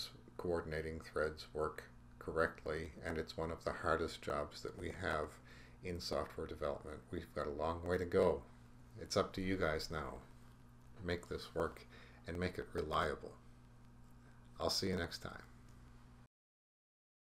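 An elderly man speaks calmly into a microphone, as if on an online call.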